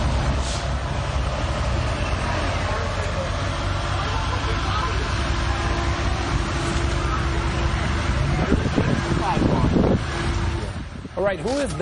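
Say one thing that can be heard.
A vehicle engine rumbles as it drives slowly past.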